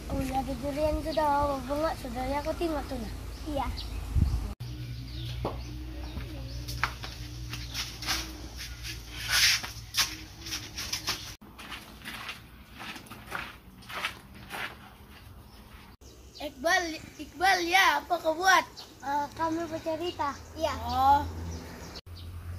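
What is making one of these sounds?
Children talk with animation close by.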